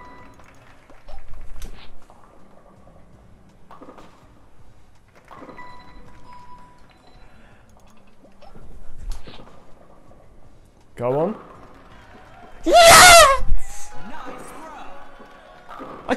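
A bowling ball knocks down pins with a clatter.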